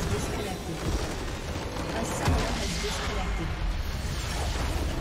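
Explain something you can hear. Game spell effects crackle and explode loudly.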